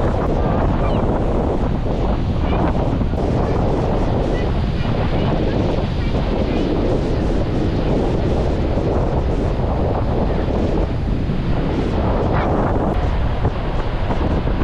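A small plastic shovel scrapes and digs into sand.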